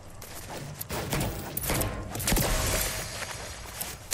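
A loud magical blast bursts with a crackling roar.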